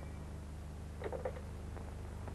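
A telephone handset is lifted with a clatter.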